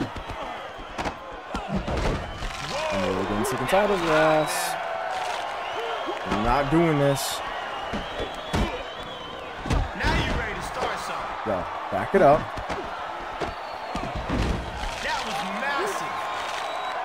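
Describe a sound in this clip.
Punches and body slams thud in quick bursts.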